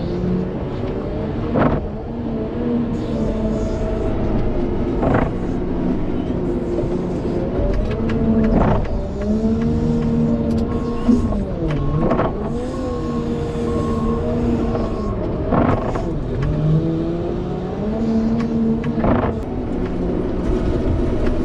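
A plow blade scrapes and pushes through snow.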